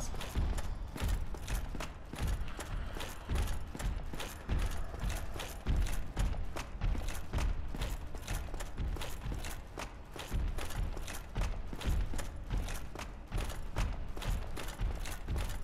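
Metal armour rattles with each step.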